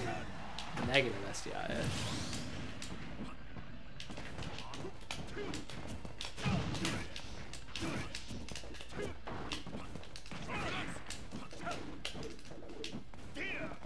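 Fighters' hits and impacts thud and crack in quick bursts.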